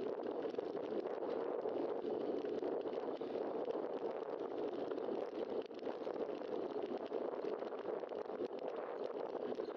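Wind rushes steadily past a microphone.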